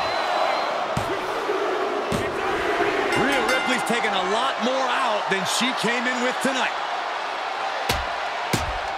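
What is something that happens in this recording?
A large crowd cheers and murmurs in a big echoing arena.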